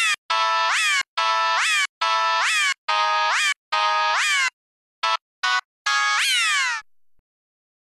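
An electronic organ plays short bright notes that slide up in pitch.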